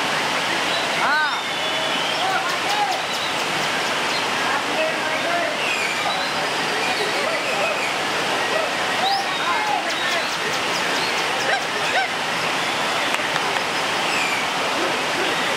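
A white-rumped shama sings varied whistled phrases.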